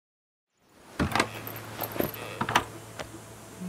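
A wooden crate knocks down onto a table.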